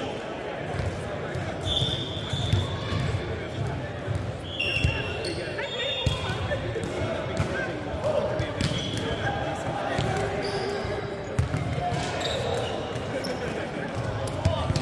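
Men chatter and call out in a large echoing hall.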